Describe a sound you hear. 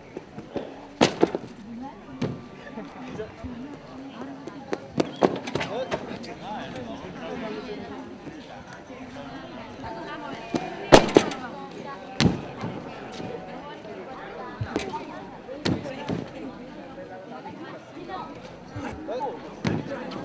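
Feet thump hard on a springboard.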